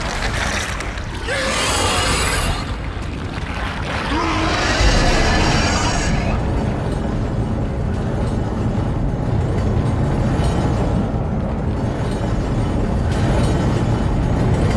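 A deep mechanical drone hums steadily throughout.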